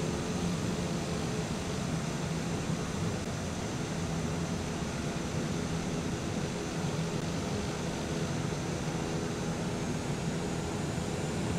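A propeller engine hums steadily as a small plane taxis.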